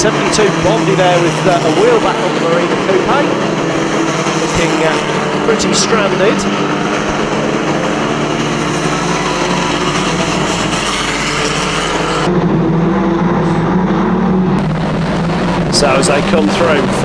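Racing car engines roar and rev loudly.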